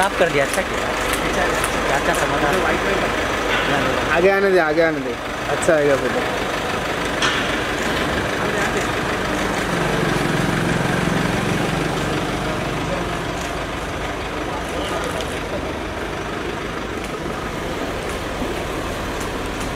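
A car engine hums as a car pulls slowly away.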